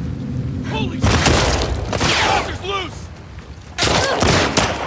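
Gunshots ring out loudly.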